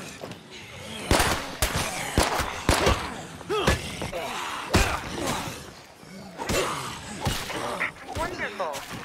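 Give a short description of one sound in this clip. Blows and thuds strike in a fight.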